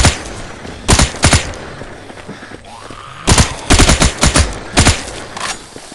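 A submachine gun fires in short bursts.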